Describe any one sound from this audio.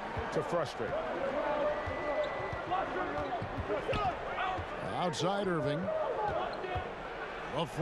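A basketball bounces steadily on a hardwood court.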